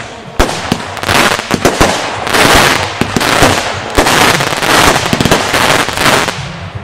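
Fireworks crackle and fizz in rapid bursts.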